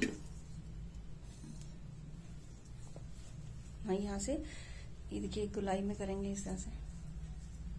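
Hands rub and massage a bare foot softly.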